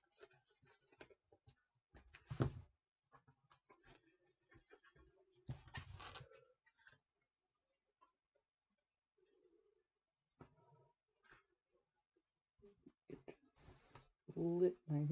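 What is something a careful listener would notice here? Paper crinkles and rustles as it is handled up close.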